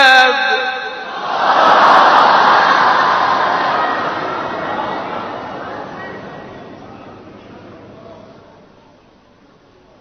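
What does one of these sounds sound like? A large crowd calls out together, then fades away.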